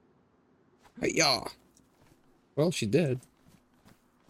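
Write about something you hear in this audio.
A man speaks briefly and with animation, close to a microphone.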